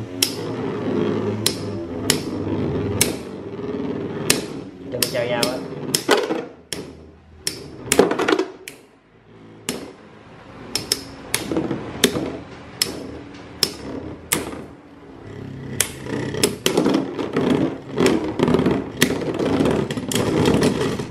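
Two spinning tops whir steadily in a plastic bowl.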